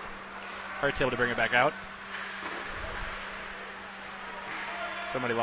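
A hockey stick clacks against the puck.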